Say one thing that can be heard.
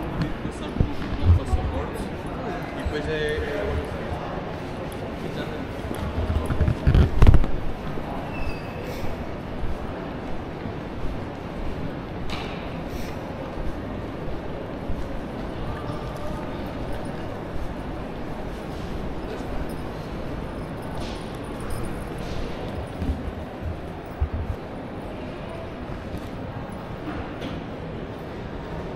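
Footsteps tap on a hard floor in a large echoing hall.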